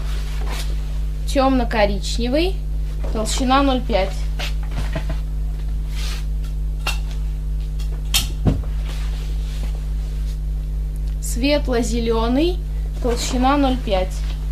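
Fabric rustles and flaps close by.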